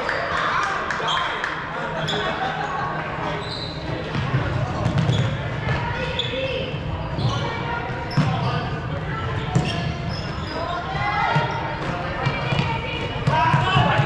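Young people shout and call out to each other in a large echoing hall.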